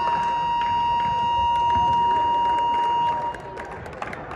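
A loud buzzer sounds steadily in a large echoing hall, then stops.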